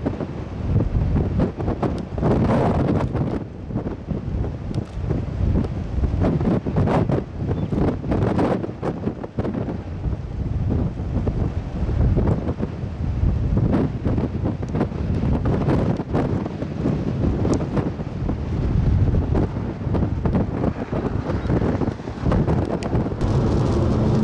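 Strong wind gusts and buffets loudly outdoors.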